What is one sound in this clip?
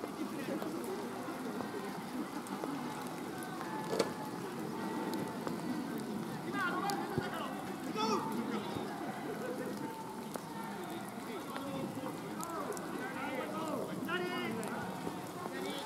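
Distant players shout across an open field outdoors.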